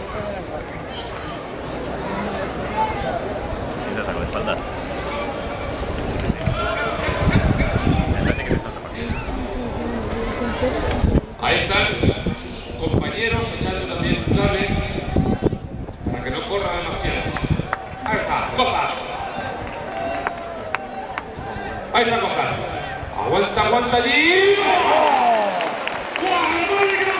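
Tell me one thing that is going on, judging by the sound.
A large crowd chatters and calls out in an open arena.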